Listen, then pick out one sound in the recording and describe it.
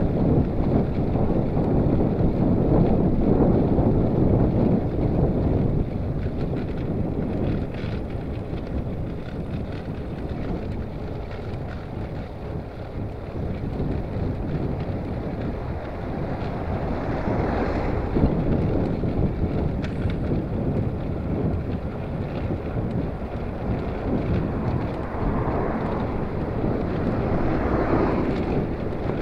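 Wind rumbles loudly past the rider on a moving bicycle outdoors.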